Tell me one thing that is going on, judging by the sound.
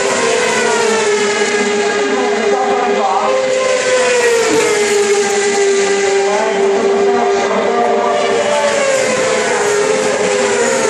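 Racing engines whine and rev steadily at a distance, outdoors.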